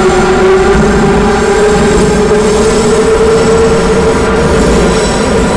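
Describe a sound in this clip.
Train wheels rumble along the rails.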